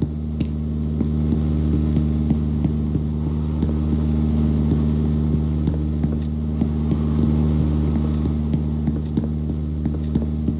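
Footsteps thud down a flight of stairs.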